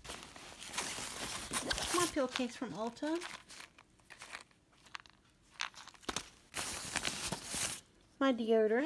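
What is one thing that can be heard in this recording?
Fabric and plastic rustle as a hand rummages through a bag.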